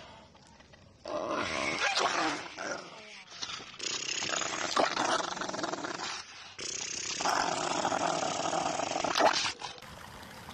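A dog snarls and growls close by.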